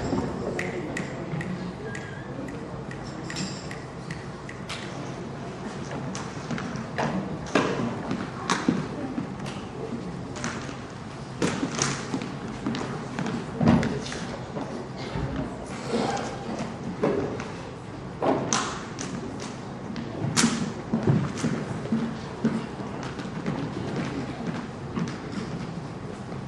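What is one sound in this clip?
Knocks and clatters of equipment echo in a large hall.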